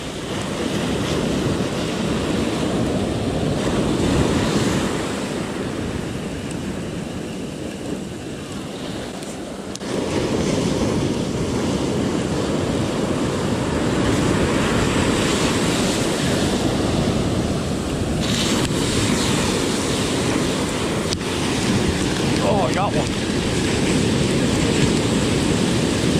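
Waves break and wash up on a beach close by.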